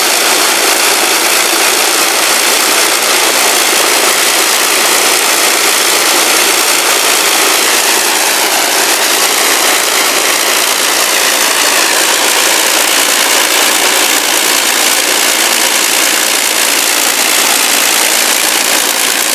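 Loud propeller engines roar steadily close by.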